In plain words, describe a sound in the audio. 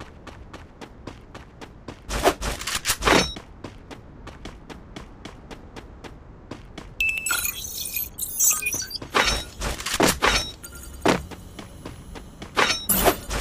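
Quick footsteps run over ground.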